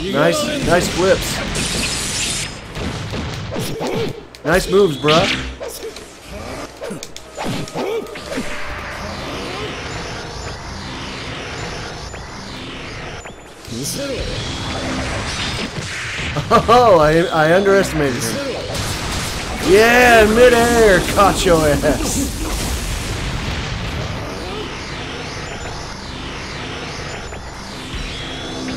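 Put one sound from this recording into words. Game fight effects whoosh, blast and crackle with fire.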